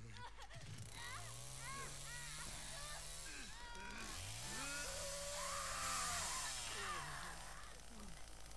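A chainsaw engine revs up and down.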